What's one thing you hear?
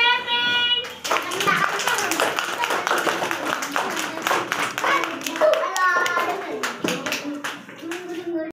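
Children clap their hands.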